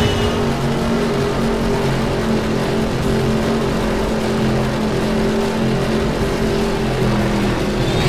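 Tyres skid and slide on loose dirt.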